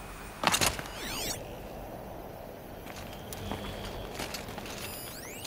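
A low electronic hum rises and sweeps as a scanning device switches on.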